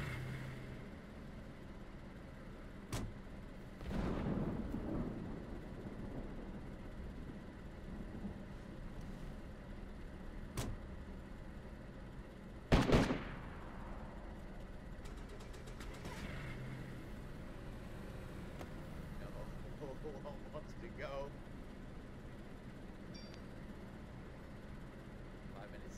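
Rain patters steadily on a car's roof and windows.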